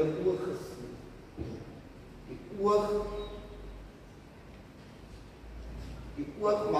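A middle-aged man speaks slowly and solemnly, heard in a hall with some echo.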